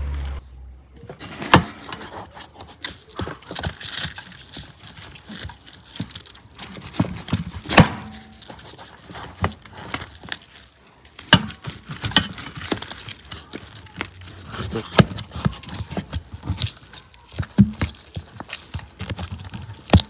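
A knife cuts and crunches through crisp roasted meat.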